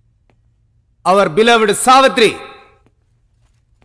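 A man speaks loudly into a microphone.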